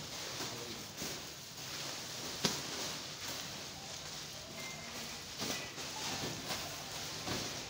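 Men talk and shout nearby with animation.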